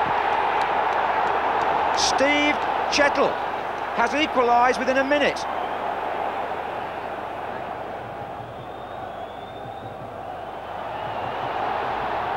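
A large stadium crowd roars loudly and then gradually quiets down.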